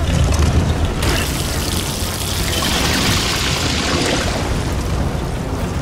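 Water splashes and gushes loudly.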